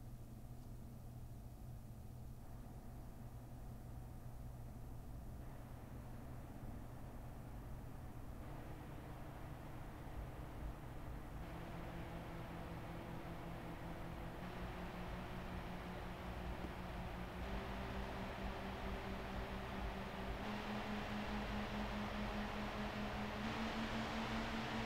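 A computer cooling fan whirs, getting louder and higher in steps.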